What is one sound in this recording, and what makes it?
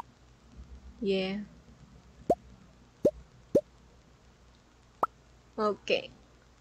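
A young woman speaks briefly and casually into a microphone.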